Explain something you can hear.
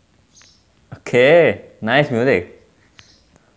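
A young man laughs softly close by.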